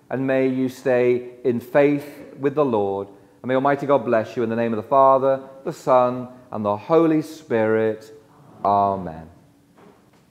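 A man chants a prayer through a microphone in a large echoing church.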